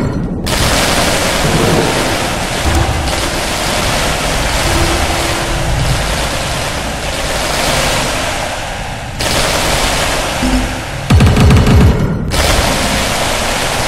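Towers fire with rapid crackling zaps and bursts.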